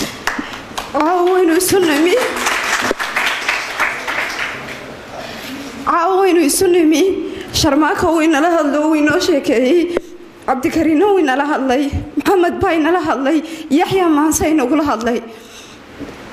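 A young woman speaks emotionally into a microphone, heard through a loudspeaker.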